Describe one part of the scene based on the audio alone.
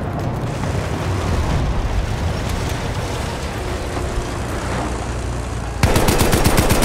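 Explosions rumble and crackle nearby.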